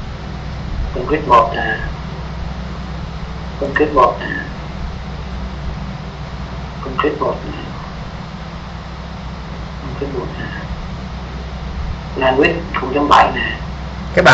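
A man speaks in short, calm bursts over an online call.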